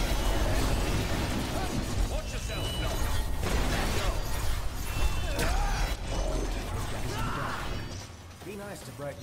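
Magical blasts burst and crackle loudly.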